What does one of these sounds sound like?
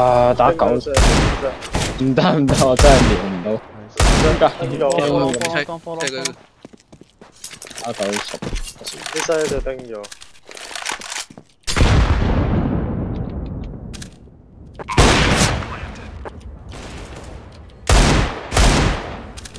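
Gunshots crack loudly in sharp bursts.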